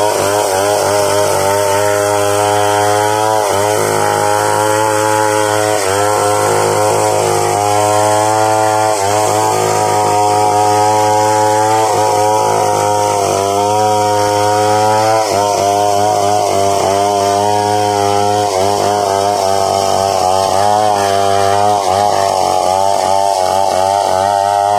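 A chainsaw engine roars loudly and steadily as it cuts through wood, with the pitch dipping briefly now and then.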